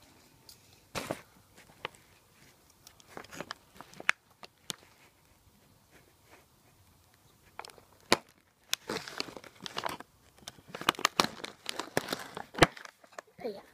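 Hard plastic pieces click and clack together.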